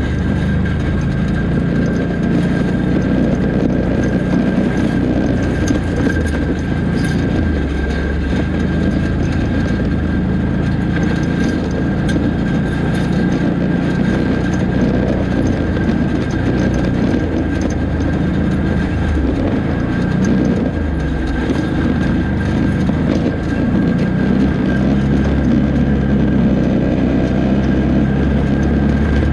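Tyres crunch over loose gravel and stones.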